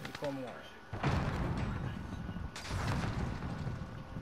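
An assault rifle fires in bursts.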